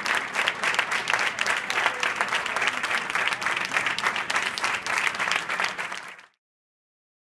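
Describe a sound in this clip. A crowd cheers and applauds loudly in an echoing hall.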